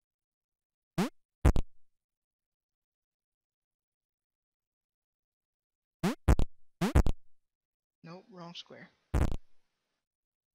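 Short electronic blips sound as a game block jumps.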